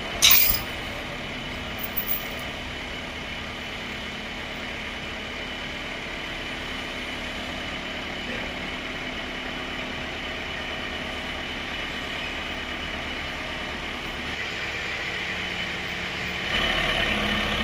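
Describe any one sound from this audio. A saw grinds steadily through a large log.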